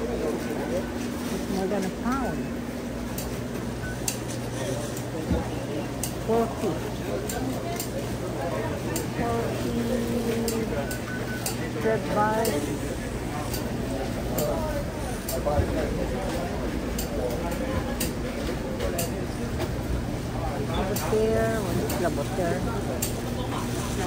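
Refrigerators hum steadily and low.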